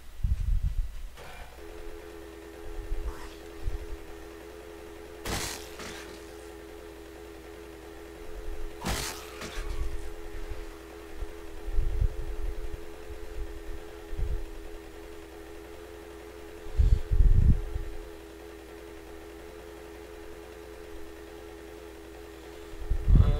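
Low thuds and bumps sound as a motorbike rides over rough ground.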